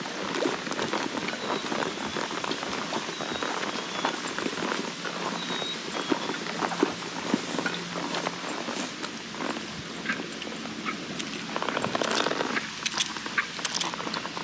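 Tall grass rustles and swishes against the legs of a walking horse.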